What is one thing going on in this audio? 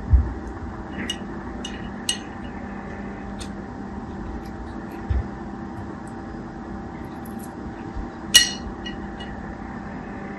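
A blade clicks and pops against soft gel beads.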